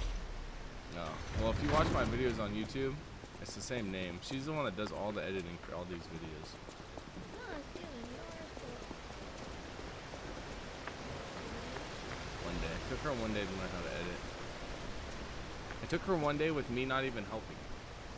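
A young man talks casually into a microphone, close by.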